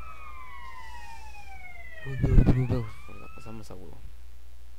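Police sirens wail with falling pitch.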